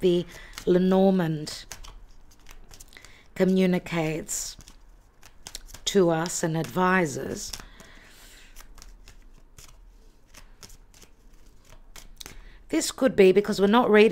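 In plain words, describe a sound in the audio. Playing cards are shuffled with soft, quick flicks.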